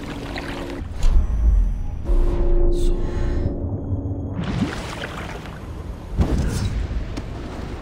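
A sudden whooshing rush sweeps past.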